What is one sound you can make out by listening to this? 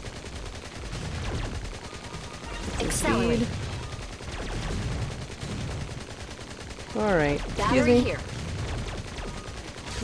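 Explosions burst with electronic crackles.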